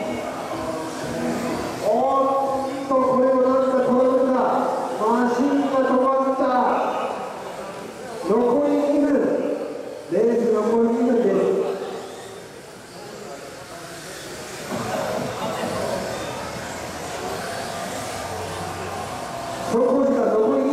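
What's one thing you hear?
Small electric model cars whine as they race around a track.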